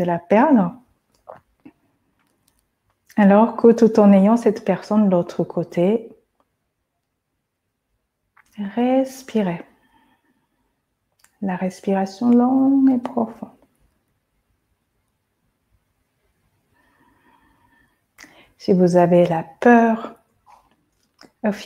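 A woman speaks calmly and slowly, close by, with pauses between phrases.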